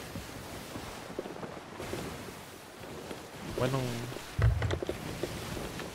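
Rough sea waves splash and churn around a wooden ship.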